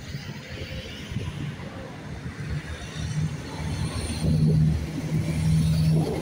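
Train wheels rumble on the rails.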